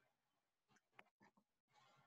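A shell is set down on paper with a soft knock.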